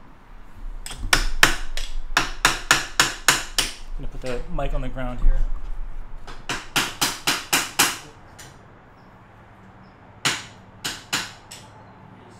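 A hammer taps sharply and repeatedly on metal.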